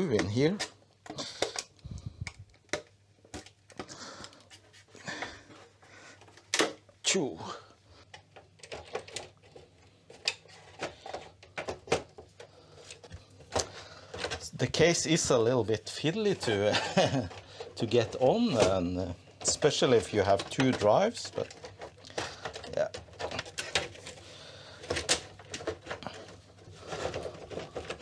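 Plastic panels click and knock as they are handled.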